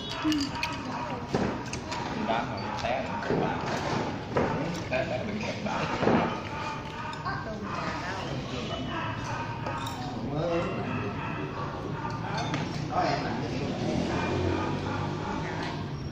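Several men and women chat and laugh together close by.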